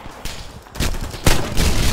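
A rifle fires a single loud shot close by.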